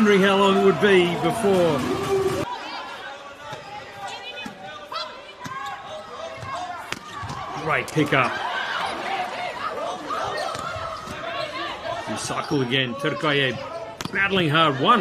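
A crowd cheers and chants in a large echoing arena.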